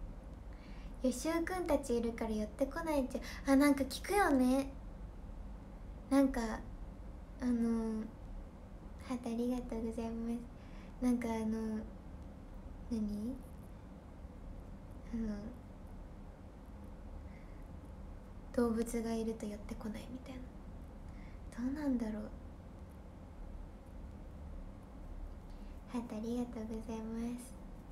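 A young woman talks close by in an animated, cheerful voice, with pauses between phrases.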